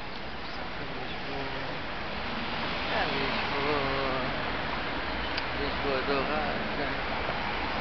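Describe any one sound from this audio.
Several adults chat nearby outdoors.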